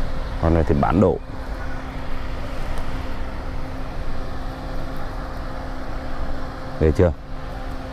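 Leaves rustle softly as a hand brushes through them.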